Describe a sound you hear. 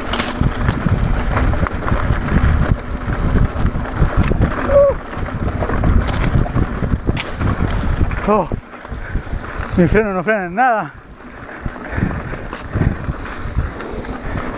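A bicycle frame rattles over bumps.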